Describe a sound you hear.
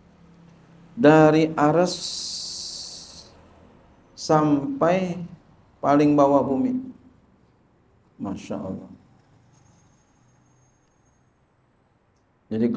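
A middle-aged man speaks slowly and calmly into a microphone, in short phrases with pauses, heard through a loudspeaker.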